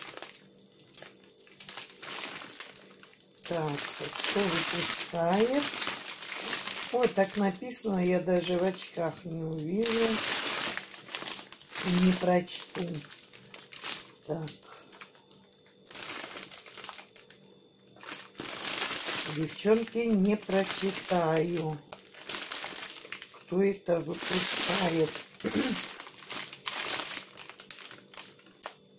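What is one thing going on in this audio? Plastic food packets crinkle and rustle as they are handled.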